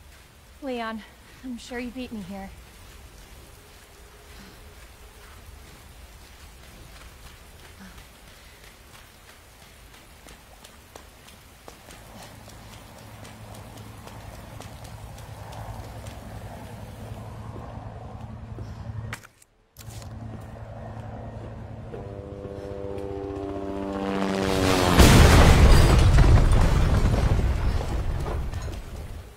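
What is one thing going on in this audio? Footsteps hurry over hard ground and steps.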